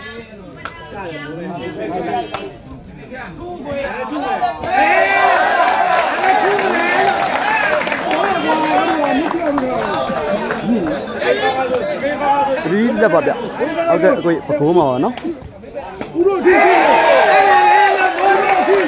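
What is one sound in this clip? A large outdoor crowd cheers and chatters loudly.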